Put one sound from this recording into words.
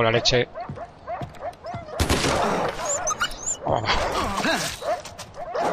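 A wolf whimpers and yelps close by.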